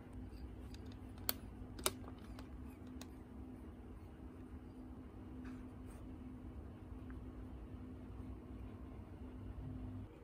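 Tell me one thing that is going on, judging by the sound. A plastic disc clicks as it is handled.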